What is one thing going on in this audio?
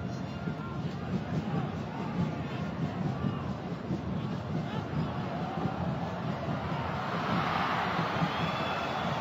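A large stadium crowd roars steadily, swelling louder toward the end.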